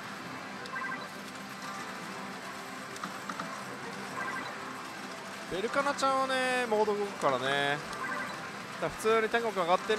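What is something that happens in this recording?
A slot machine plays electronic beeps and jingles.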